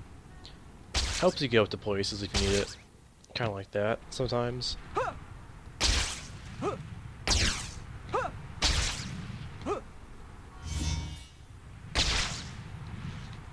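Sharp whooshing swishes rush past again and again.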